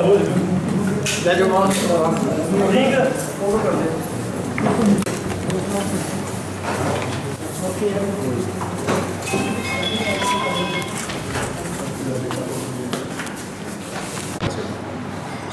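Several men talk at once in a crowded room.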